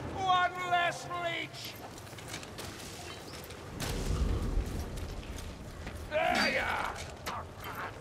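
Gunshots crack and boom.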